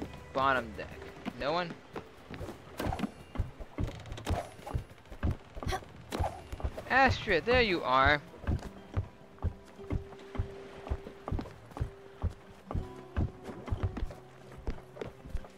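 Light footsteps patter on wooden boards.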